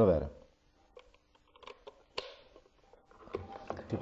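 A small plastic device clicks and rattles as it is handled.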